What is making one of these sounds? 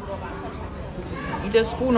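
Chopsticks toss and mix food in a bowl.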